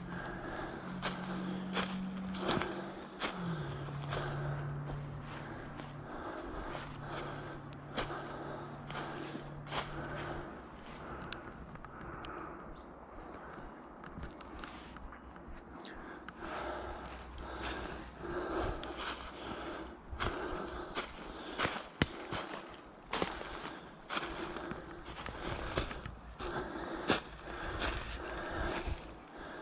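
Footsteps crunch through dry leaves and twigs at a steady walking pace.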